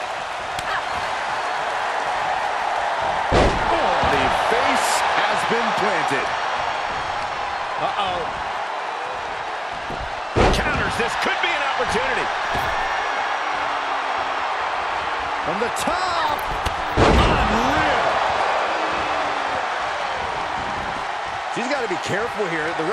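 A large crowd cheers and roars steadily in a big echoing arena.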